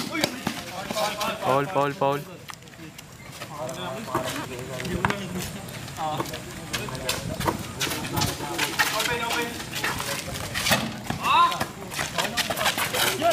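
Young men shout to each other during play outdoors.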